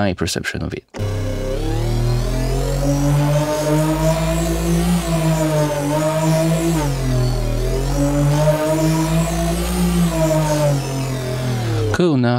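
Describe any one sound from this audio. A synthesizer holds a deep buzzing tone that slowly sweeps up and down.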